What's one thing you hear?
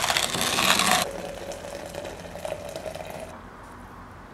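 Hot water pours into a glass coffee press.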